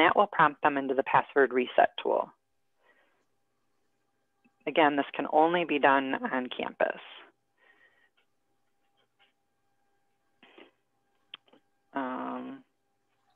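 An adult speaks calmly through an online call.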